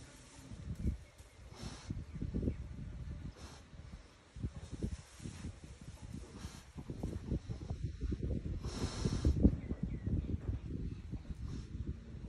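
A pig breathes heavily.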